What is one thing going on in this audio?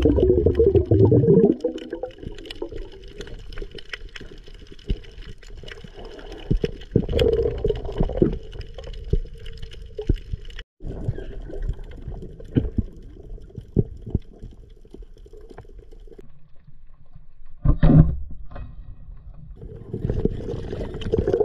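Water rushes and crackles softly underwater.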